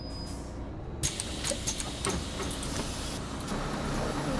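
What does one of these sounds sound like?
Bus doors open with a hiss of air.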